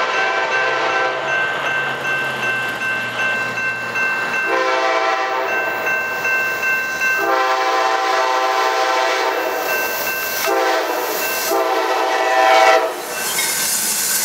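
A diesel passenger locomotive's engine roars as it approaches and passes.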